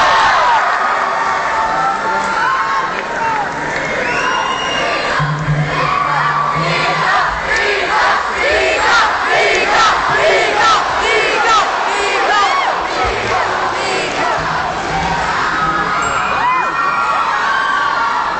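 Several cellos play loudly together, heard live from within an audience.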